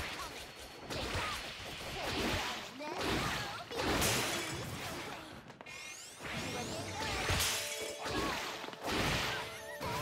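Energy blasts and attacks whoosh and crash during a fight.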